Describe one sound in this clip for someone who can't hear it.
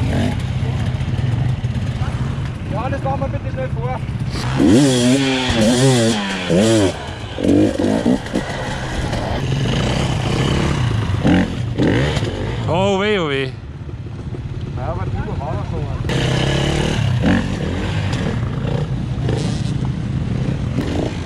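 Other dirt bikes whine in the distance.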